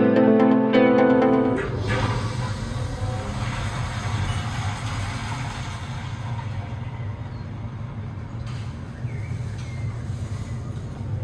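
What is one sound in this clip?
An elevator hums and rumbles steadily as it rises.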